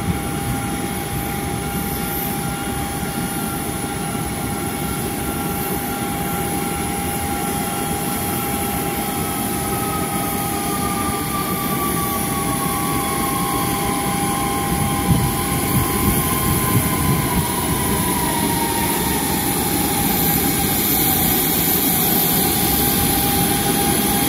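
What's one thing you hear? A jet airliner's auxiliary power unit whines steadily as the aircraft taxis slowly.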